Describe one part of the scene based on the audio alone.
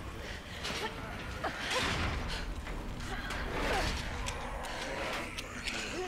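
A metal gate rattles as it is pushed and shaken.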